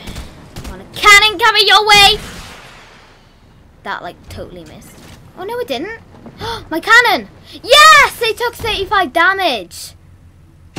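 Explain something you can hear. A young girl talks with animation into a headset microphone, close by.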